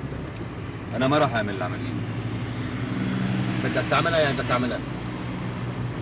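A middle-aged man talks inside a car.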